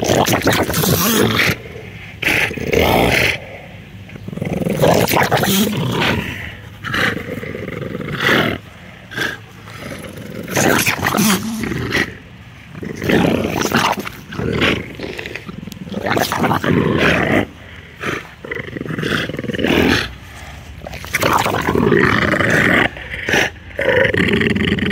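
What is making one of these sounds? Two dogs growl and snarl up close.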